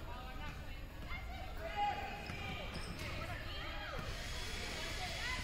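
Basketballs bounce on a hardwood floor.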